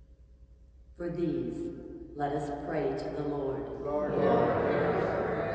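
A middle-aged woman reads aloud calmly through a microphone in an echoing room.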